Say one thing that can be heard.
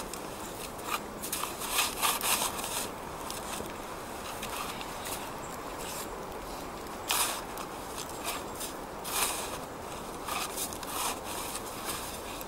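A shovel scrapes and scoops through snow.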